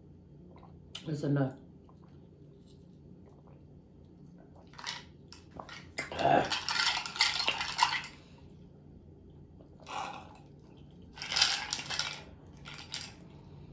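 A woman sips a drink noisily through a straw.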